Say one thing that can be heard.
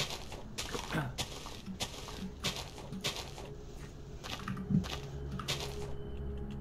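Leaves rustle and crunch in quick bursts as blocks are broken.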